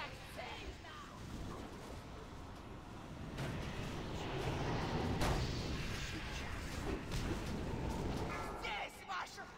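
Magic blasts and battle noises rumble and crash loudly.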